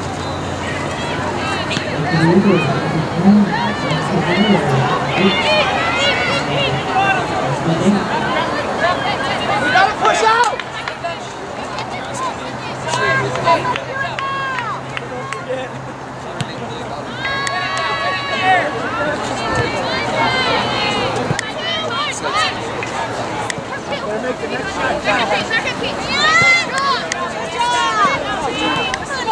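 Spectators cheer and chatter in the distance.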